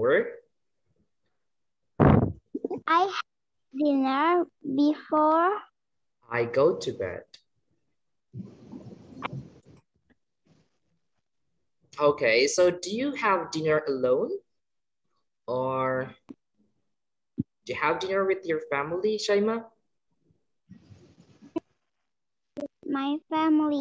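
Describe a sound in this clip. A young boy talks with animation over an online call.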